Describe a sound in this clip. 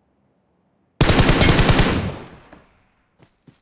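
A rifle fires a single loud, booming shot.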